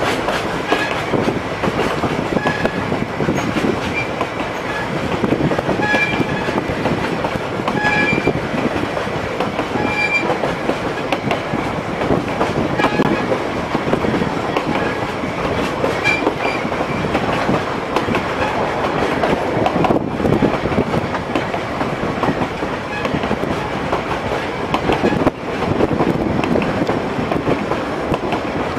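A train rumbles along the track.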